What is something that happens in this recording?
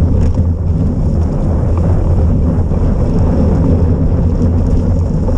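A small engine whines loudly at close range as a vehicle speeds along a road.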